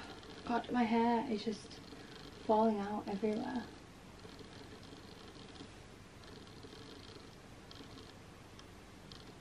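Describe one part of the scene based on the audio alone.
Hair rustles softly as fingers run through it.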